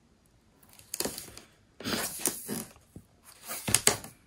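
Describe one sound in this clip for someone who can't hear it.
A roll of tape rattles and is set down.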